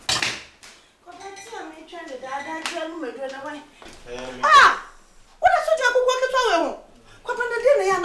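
A woman speaks sharply.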